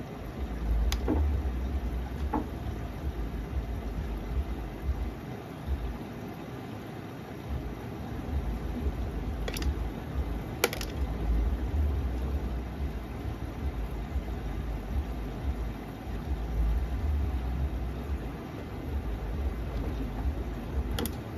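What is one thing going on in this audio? Small clicks sound as buttons knock against a washing machine drum.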